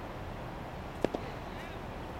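A cricket bat sharply cracks against a ball.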